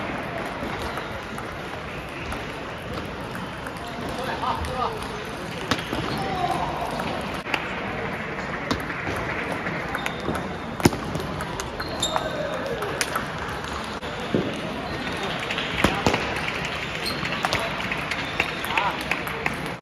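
A table tennis ball clicks sharply off paddles and the table in a rally.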